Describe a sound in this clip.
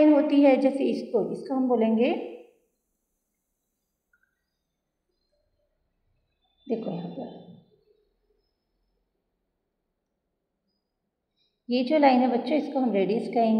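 A middle-aged woman speaks calmly into a microphone, explaining in short bursts with pauses.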